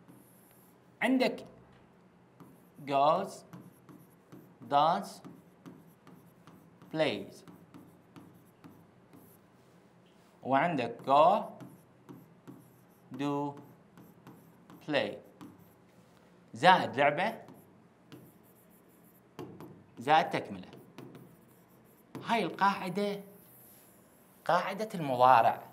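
A young man speaks in short bursts, explaining calmly and close by.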